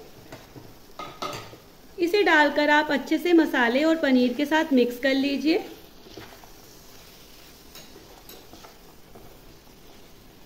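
A wooden spatula scrapes and stirs in a frying pan.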